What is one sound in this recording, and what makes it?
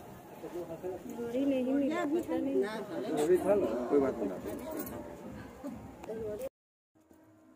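A woman sings close by.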